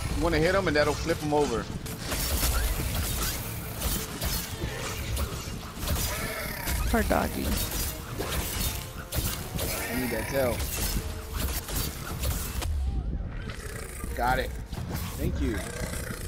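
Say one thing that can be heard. Weapons strike a large creature in rapid, heavy hits.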